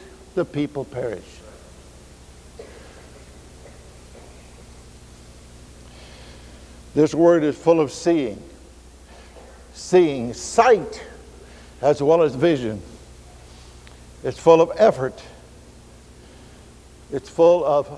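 An elderly man preaches emphatically through a microphone, pausing between phrases.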